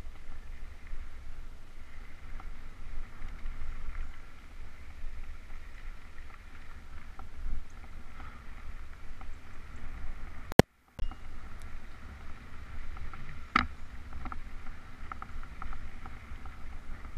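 A bicycle chain and frame clatter over bumps.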